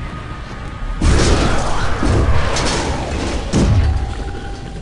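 A metal grate clatters and rattles loudly.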